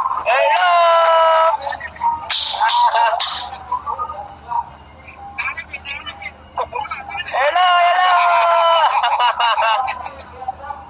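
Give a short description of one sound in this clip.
A young man sings loudly and playfully close to a phone microphone.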